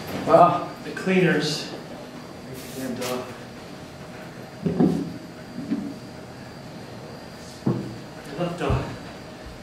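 Fabric rustles as a man pulls off a jacket.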